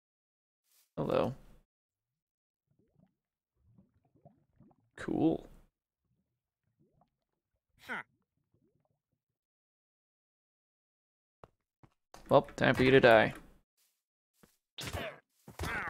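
A cartoonish game trader makes short nasal grunts.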